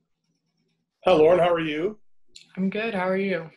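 A young woman speaks calmly into a microphone over an online call.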